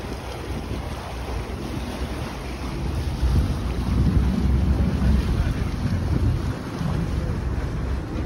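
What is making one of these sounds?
Water laps and splashes against a quay.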